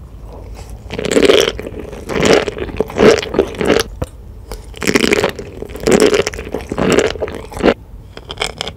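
Crunchy sea grapes pop and crackle as a young woman chews close to a microphone.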